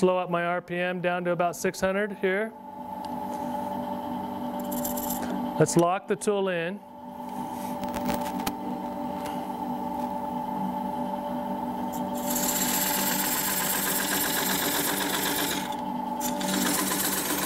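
A wood lathe motor hums steadily.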